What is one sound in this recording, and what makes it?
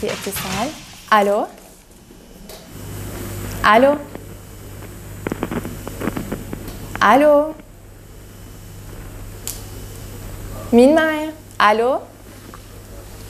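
A young woman speaks brightly into a microphone.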